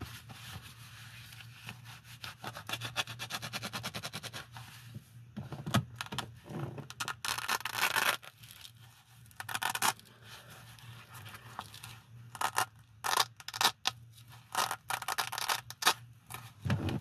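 Metal handcuffs clink and click.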